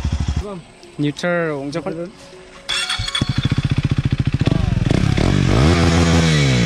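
A motorcycle engine revs up and winds down.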